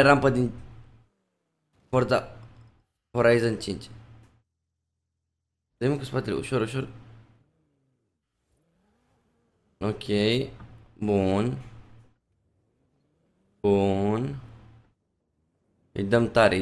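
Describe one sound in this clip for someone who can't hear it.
A young man talks with animation in short bursts, close to a microphone.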